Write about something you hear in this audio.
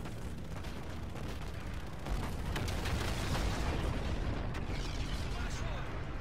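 A huge explosion roars and rumbles.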